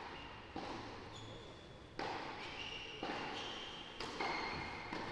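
A tennis ball is struck back and forth with sharp pops in an echoing indoor hall.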